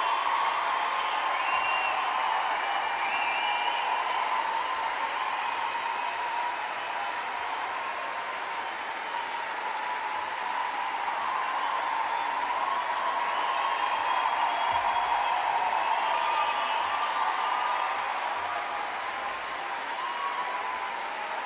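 An orchestra plays a sustained passage in a large, reverberant hall.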